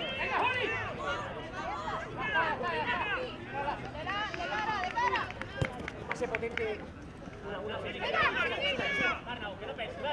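A football is kicked with dull thuds on artificial grass.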